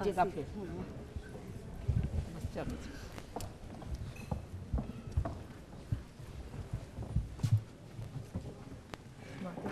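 A crowd murmurs and shuffles nearby.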